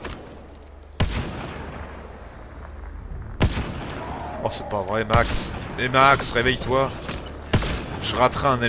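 A rifle fires loud, sharp shots, one at a time.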